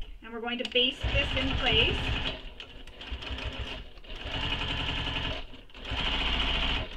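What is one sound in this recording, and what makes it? A sewing machine runs in quick, steady bursts of stitching.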